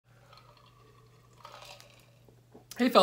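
A man drinks from a cup with soft swallowing sounds.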